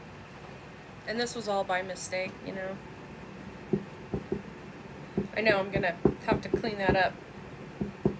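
An older woman talks calmly into a close microphone.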